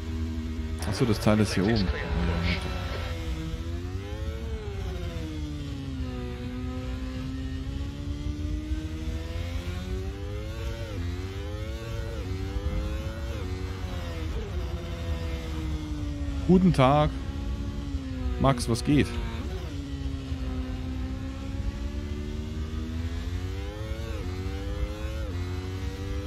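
A racing car engine whines, rising and falling in pitch as gears shift.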